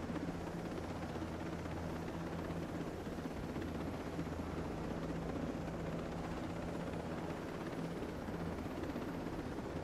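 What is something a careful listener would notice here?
A helicopter engine roars steadily.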